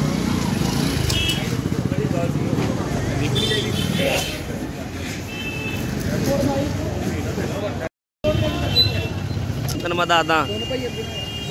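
Motorcycles ride past on a busy street.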